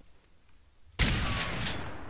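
A pistol fires a loud shot that echoes.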